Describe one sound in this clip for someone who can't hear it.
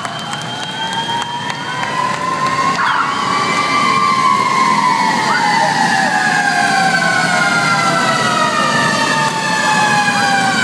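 Motorcycle engines rumble as they pass close by.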